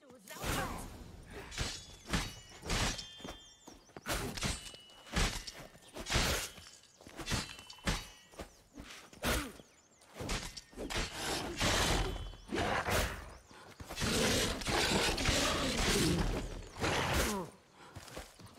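A beast snarls and growls.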